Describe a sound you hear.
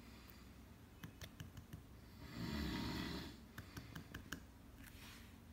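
Fingers tap and scratch on a wooden floor.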